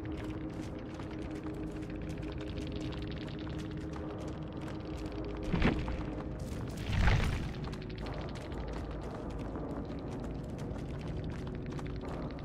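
Footsteps run and rustle through tall grass.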